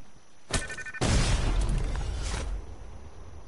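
A wooden wall smashes apart with a loud crunching crash.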